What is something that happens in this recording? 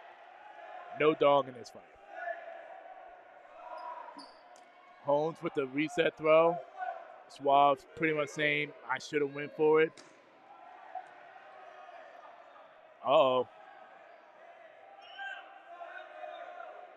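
A crowd of spectators murmurs and calls out in the background.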